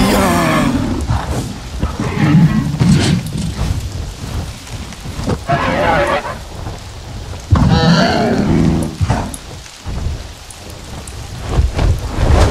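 Large wings beat with heavy whooshes.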